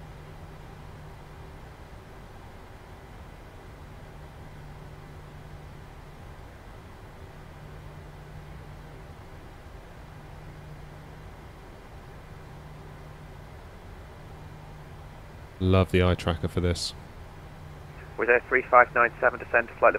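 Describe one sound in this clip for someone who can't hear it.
A jet engine hums low and steady.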